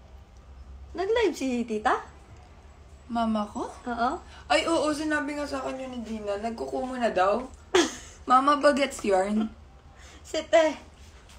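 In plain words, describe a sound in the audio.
A young woman talks casually and with animation close to a phone microphone.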